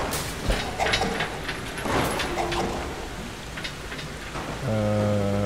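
Footsteps clank on a metal walkway.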